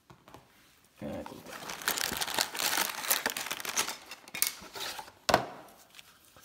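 Plastic packaging rustles and crinkles as hands rummage through it.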